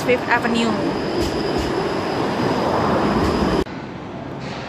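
A streetcar rolls past close by.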